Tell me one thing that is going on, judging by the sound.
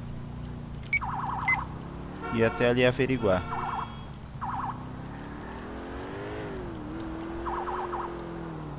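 A police siren wails in short warbling bursts.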